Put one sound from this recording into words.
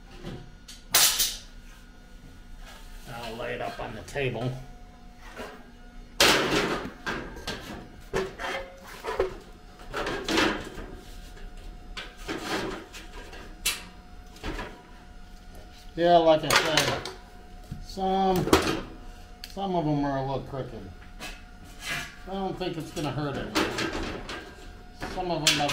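A metal bar clanks and scrapes against metal.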